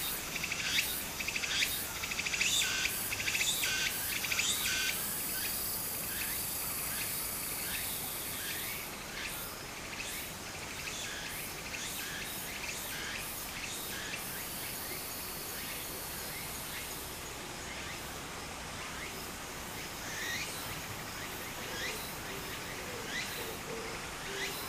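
Shallow water trickles and ripples over stones.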